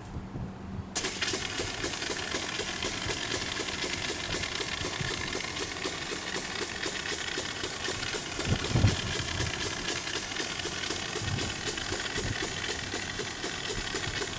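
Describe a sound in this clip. A backpack sprayer's motor roars steadily as it blasts a jet of spray.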